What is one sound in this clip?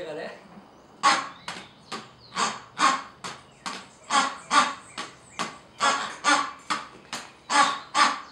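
Rubber toys squeak again and again in a quick rhythm.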